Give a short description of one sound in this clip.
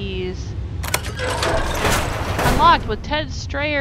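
A heavy metal door unlocks and grinds open.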